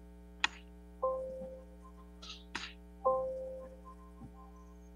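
A hand drum is struck a few times over an online call.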